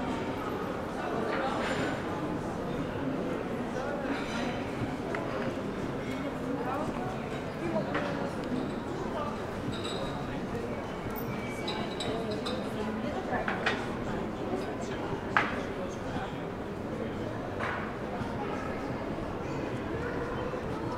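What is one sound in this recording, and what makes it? Footsteps tap steadily on stone paving.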